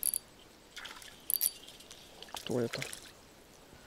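A small fishing lure plops into calm water.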